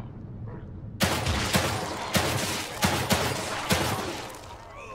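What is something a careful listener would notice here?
A gun fires several loud shots.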